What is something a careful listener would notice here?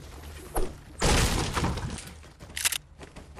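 A pickaxe smashes into a wooden crate.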